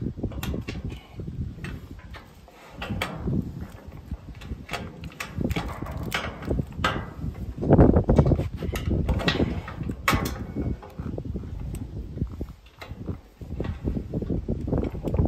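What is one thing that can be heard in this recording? Metal parts click and clatter as a clamp is fitted.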